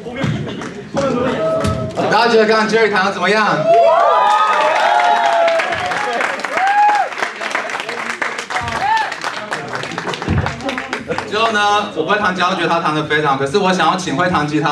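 A young man sings loudly through a microphone.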